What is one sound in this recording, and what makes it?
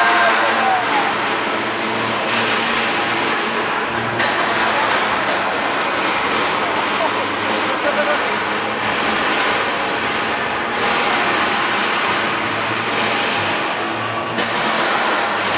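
Metal grinds and screeches as combat robots clash.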